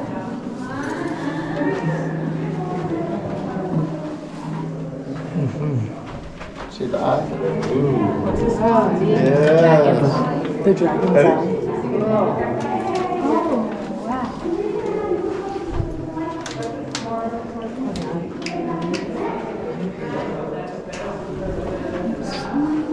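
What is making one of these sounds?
A crowd of adults talks and chatters nearby in an echoing space.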